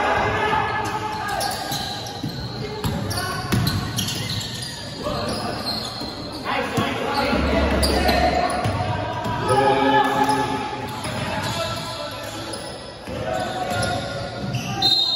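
Young men shout to each other across an echoing gym.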